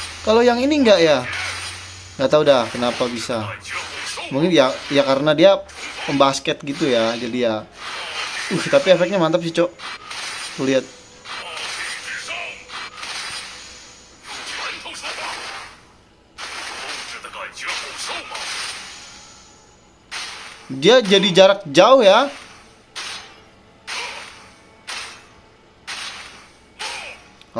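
Magic blasts whoosh and crackle in quick bursts.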